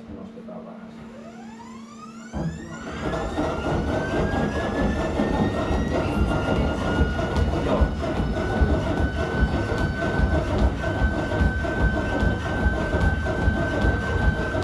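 A treadmill motor whirs, rising in pitch as the belt speeds up.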